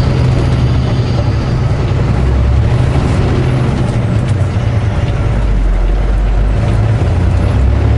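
A large truck rumbles past close by.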